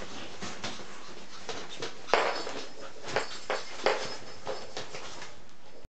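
A fabric play tunnel rustles and crinkles as a small dog crawls through it.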